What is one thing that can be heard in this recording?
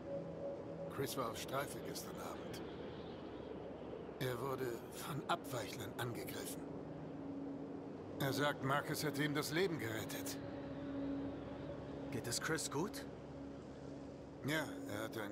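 An older man speaks in a low, gruff voice, close by.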